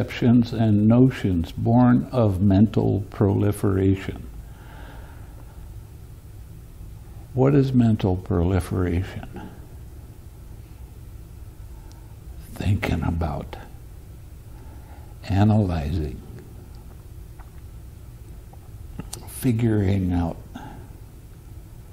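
An elderly man speaks calmly into a microphone, in short bursts with pauses.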